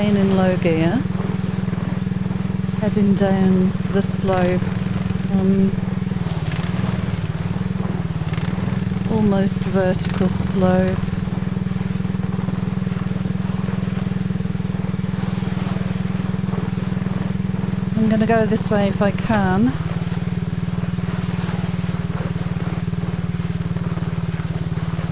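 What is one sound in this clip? A quad bike engine drones steadily as it drives over snow.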